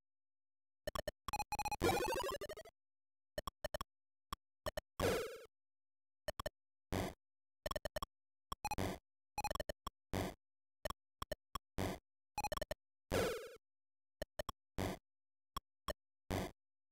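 Short electronic game blips and beeps sound in quick bursts.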